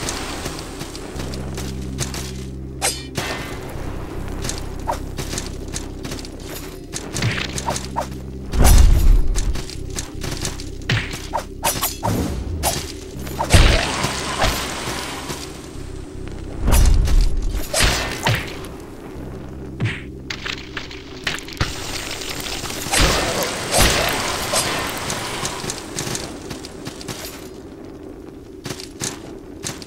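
Sword strikes and heavy impacts thud sharply in a game fight.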